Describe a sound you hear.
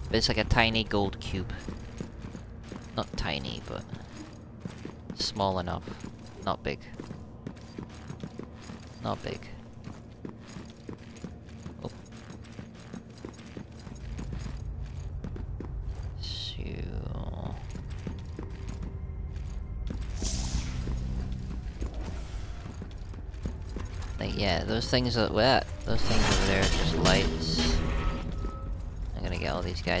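Heavy armoured footsteps thud on a hard floor.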